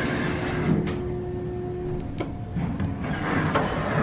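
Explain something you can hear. Elevator buttons click as a finger presses them.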